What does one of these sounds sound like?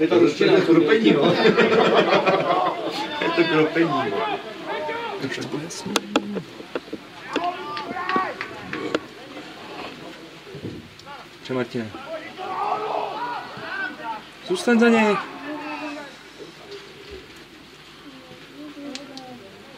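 Men shout to each other across an open field in the distance.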